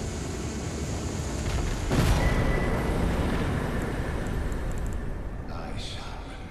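A magical burst whooshes and booms with a deep rumble.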